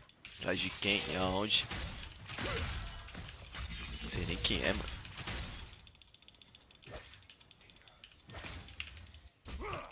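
Video game fight sounds crackle and zap.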